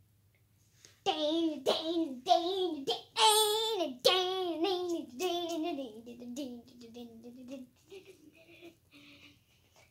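A young boy sings loudly and energetically close by.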